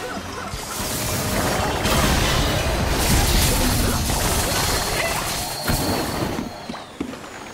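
Electric blasts crackle and roar loudly.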